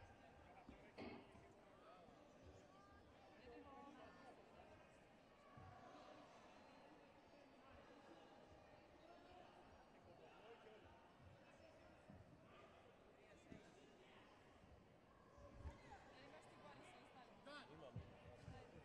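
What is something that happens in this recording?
Kicks thud against padded body protectors.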